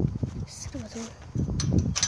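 A metal gate latch clanks.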